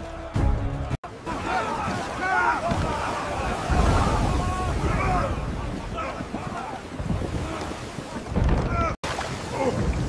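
Stormy waves crash and roar.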